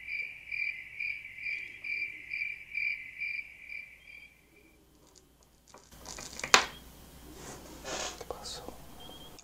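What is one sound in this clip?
Plastic parts knock and click softly under handling hands.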